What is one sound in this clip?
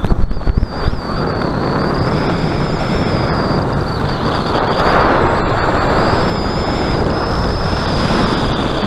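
Wind rushes loudly past, roaring steadily.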